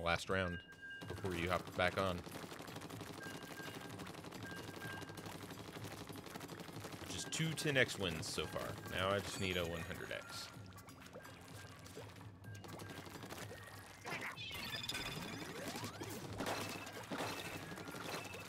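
Wet splattering bursts sound as ink is sprayed in a video game.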